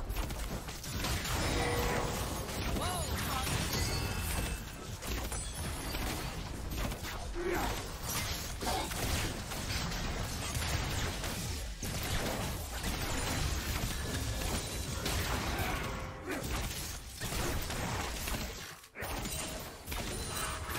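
Game spell effects whoosh, zap and explode in a fast battle.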